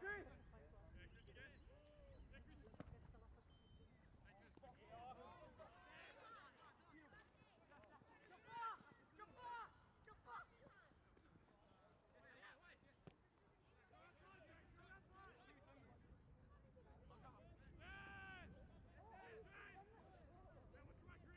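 Young men shout and call out to each other across an open field.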